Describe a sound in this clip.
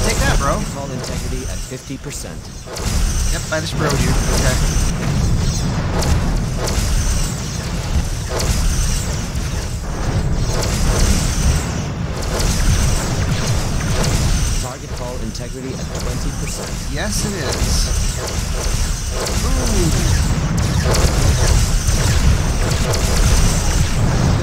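Beam weapons fire with sustained buzzing zaps.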